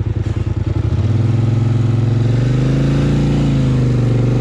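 A quad bike engine revs up and holds a higher, rising and falling pitch.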